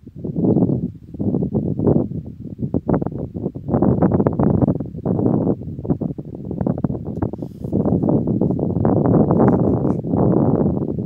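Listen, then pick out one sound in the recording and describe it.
Wind gusts loudly and buffets in the open air.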